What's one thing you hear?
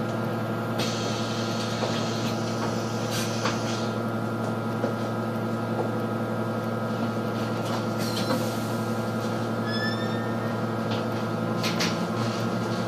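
A bus engine idles steadily nearby.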